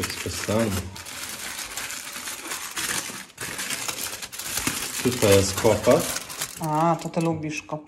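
Aluminium foil crinkles and rustles up close.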